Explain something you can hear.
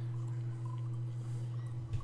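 Water pours into a cup.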